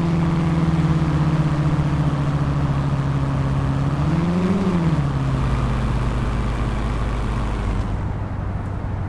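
A car engine hums steadily, briefly revs up, then settles.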